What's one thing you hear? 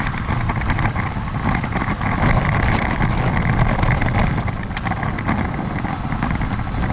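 Bicycle tyres roll and rattle over a rough dirt road.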